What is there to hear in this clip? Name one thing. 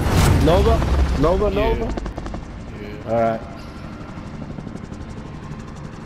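Helicopter rotors thud steadily overhead.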